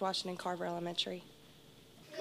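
A young woman speaks calmly into a microphone, close up.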